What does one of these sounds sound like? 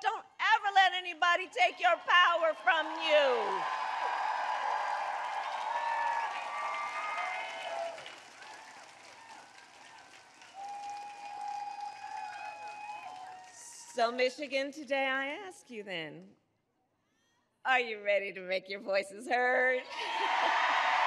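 A woman speaks forcefully into a microphone, her voice carrying outdoors over loudspeakers.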